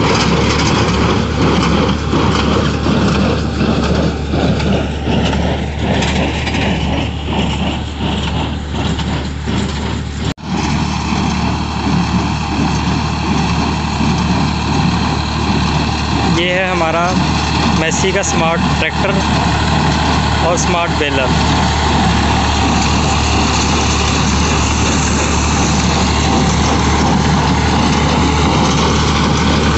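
A tractor engine rumbles steadily nearby.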